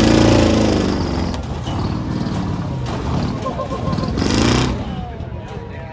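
A monster truck engine roars loudly.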